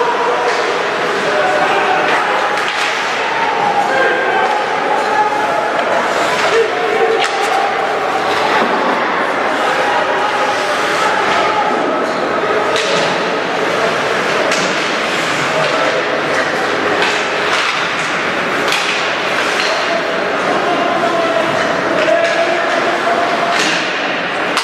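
A crowd of spectators cheers and shouts in a large echoing rink.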